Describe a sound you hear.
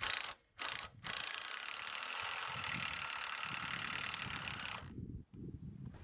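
A cordless drill whirs steadily up close.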